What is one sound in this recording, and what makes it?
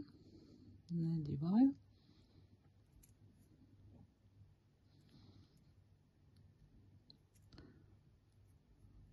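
Small metal beads rustle softly between fingers.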